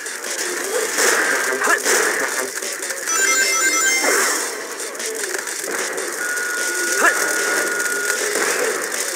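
Game sound effects chime and whoosh as a character runs and jumps.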